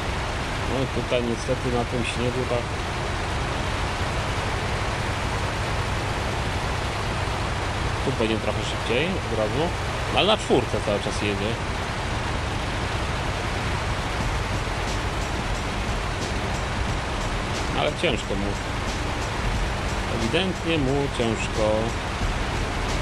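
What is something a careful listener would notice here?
A middle-aged man talks into a close microphone in short bursts.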